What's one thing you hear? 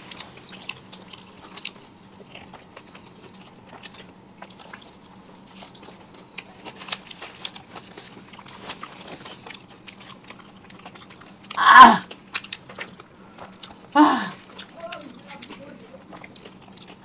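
Food is chewed with wet smacking sounds close by.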